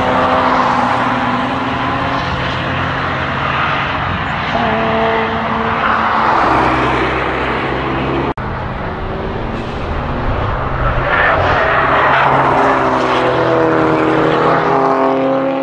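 An engine revs up and down through changing gears.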